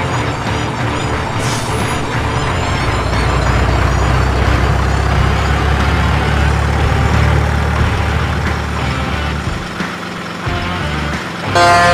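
A small electric motor whines as a toy truck crawls over rough ground.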